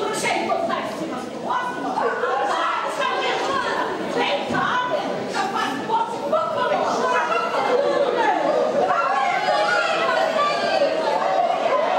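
A large choir of women and men sings a folk song together on a stage.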